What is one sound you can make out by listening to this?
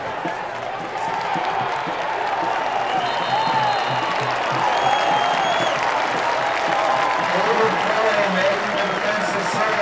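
A crowd roars loudly as a play ends.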